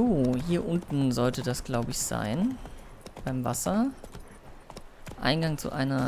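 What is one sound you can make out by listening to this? A horse gallops, hooves thudding on grass.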